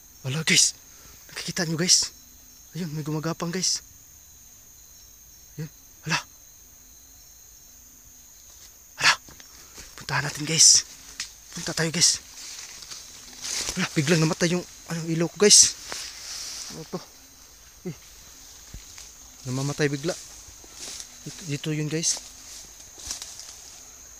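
A young man talks close by in a hushed, uneasy voice.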